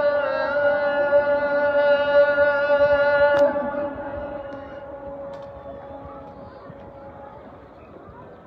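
A man's call to prayer is sung over loudspeakers and echoes across an open square.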